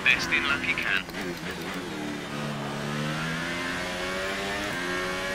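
A racing car engine winds down sharply under braking, then climbs again.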